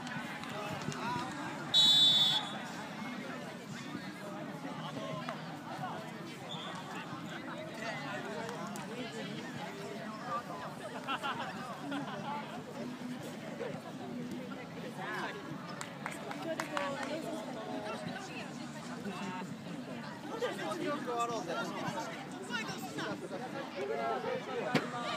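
Young players shout and call to each other in the distance outdoors.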